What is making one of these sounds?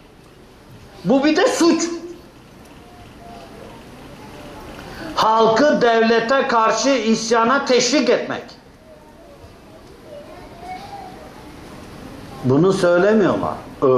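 An elderly man speaks with animation in short bursts, close by.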